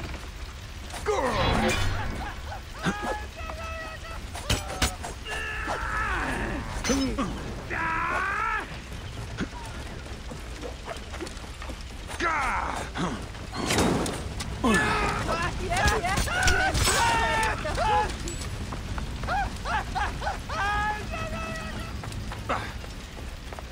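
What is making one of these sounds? A man speaks into a headset microphone.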